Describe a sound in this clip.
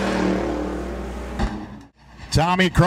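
A race car engine roars as the car speeds past.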